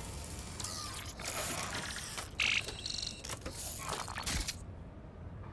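An electrical box crackles and hums with sparks.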